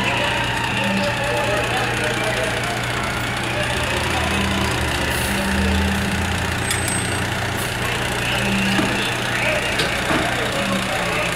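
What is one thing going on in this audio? A fire engine's motor rumbles steadily nearby.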